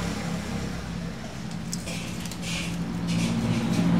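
A charcoal fire crackles softly inside a clay oven.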